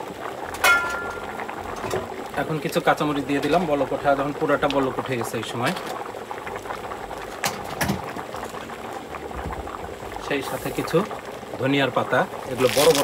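A large pot of soup bubbles and simmers.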